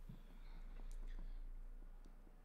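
A man speaks quietly into a microphone.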